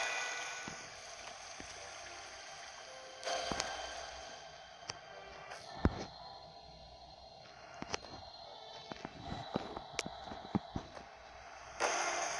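Water pours steadily from a tap.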